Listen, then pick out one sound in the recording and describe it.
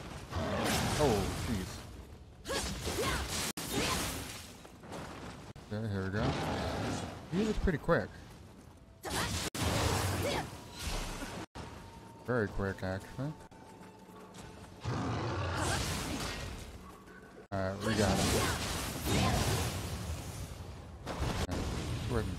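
A man talks with animation, close to a headset microphone.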